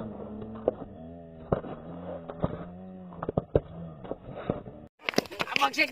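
Footsteps slap on a paved road as people run.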